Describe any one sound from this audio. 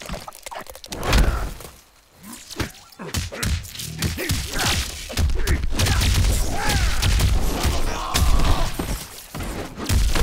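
Electric crackles and zaps burst out.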